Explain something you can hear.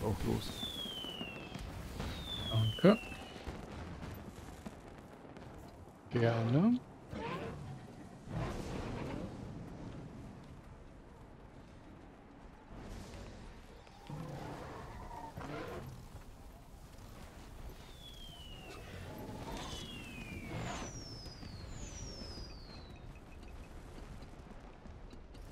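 Magical spell effects whoosh and crackle in a video game.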